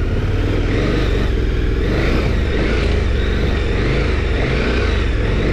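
Tyres crunch and rumble over a bumpy dirt track.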